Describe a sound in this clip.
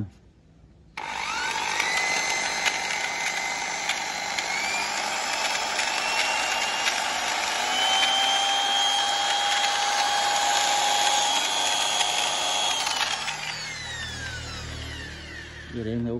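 An electric drill whirs, speeds up in steps, then winds down.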